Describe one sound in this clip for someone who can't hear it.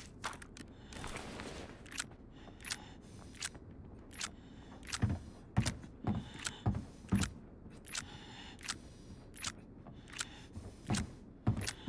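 Boots step across a wooden floor.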